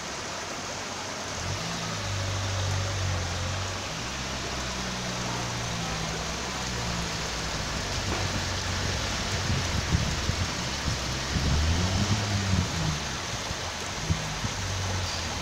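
Water gushes and splashes steadily across a paved street.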